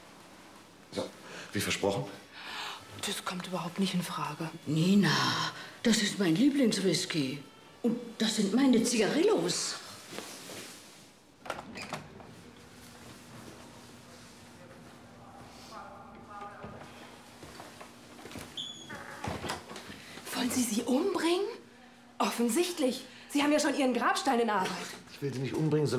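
A young woman speaks nearby, sharply and emotionally.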